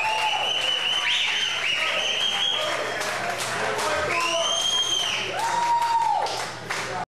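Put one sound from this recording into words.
Drums are played behind the guitars.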